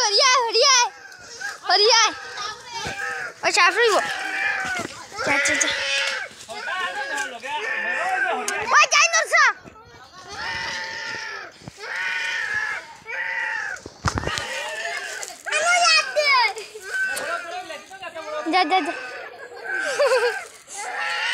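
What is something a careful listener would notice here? Young children talk and shout excitedly close by.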